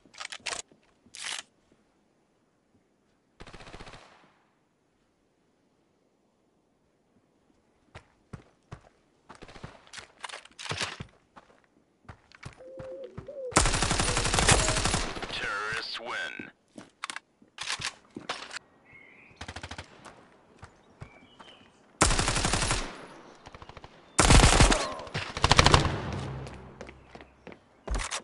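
Rapid gunfire crackles in short, loud bursts.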